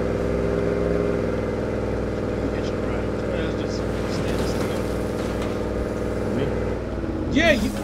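A pickup truck's engine hums steadily as it drives.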